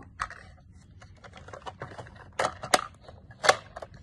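A small plastic toy door snaps shut.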